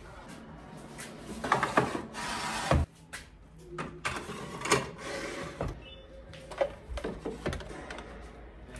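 Plastic dishes clatter as they are stacked on a shelf.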